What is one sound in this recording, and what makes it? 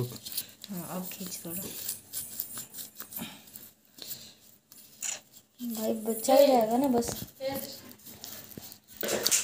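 A thin blade scrapes and scratches against a rubber ball.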